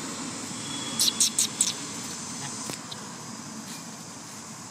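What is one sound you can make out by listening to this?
Dry leaves rustle under a monkey's feet.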